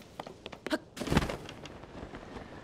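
A glider's cloth snaps open with a whoosh.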